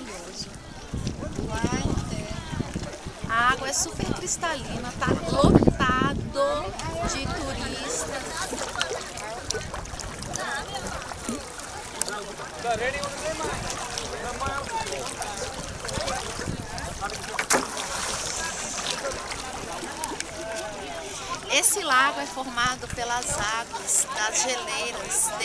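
A young woman talks animatedly, close by.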